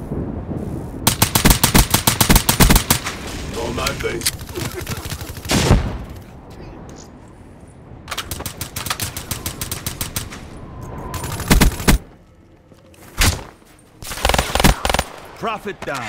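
An automatic rifle fires rapid bursts in a video game.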